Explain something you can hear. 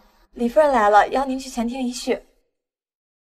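A young woman speaks brightly and clearly, close by.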